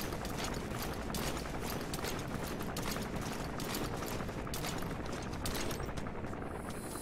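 Gunshots crack rapidly in a game.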